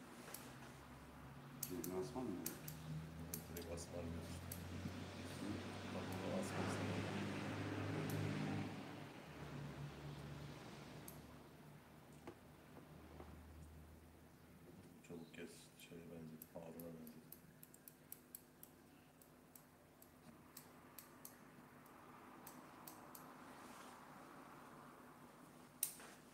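Scissors snip through hair in quick, light clicks.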